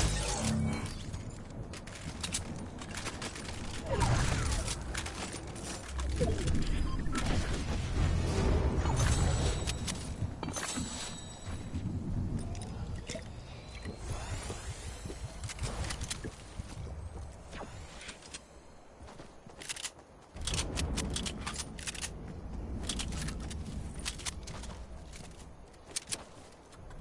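Video game sound effects thump and clatter.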